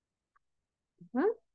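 A young woman speaks briefly into a microphone.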